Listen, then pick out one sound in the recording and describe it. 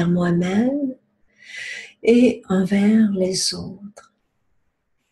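A woman speaks calmly and warmly, close to the microphone.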